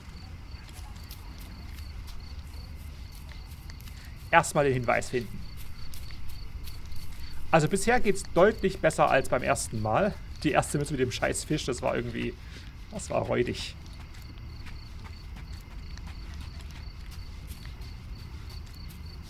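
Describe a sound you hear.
Footsteps run quickly over cobblestones and gravel.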